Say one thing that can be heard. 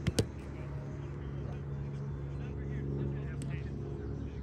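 A ball smacks against a small bouncy net.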